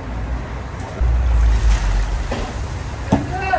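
Shredded carrots pour into hot oil with a hiss.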